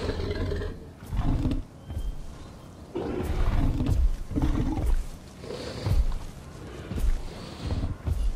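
A large dinosaur tears and chomps at a carcass with heavy, wet thuds.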